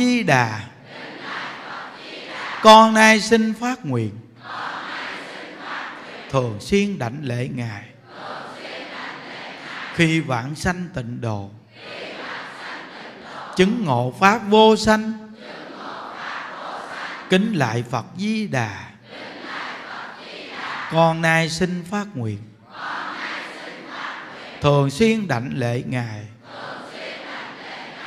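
A large crowd chants prayers together in unison.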